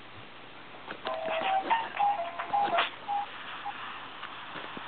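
Hands bump and rub against the recording device up close.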